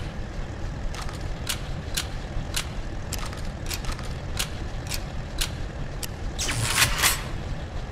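A shotgun is loaded with sharp metallic clicks.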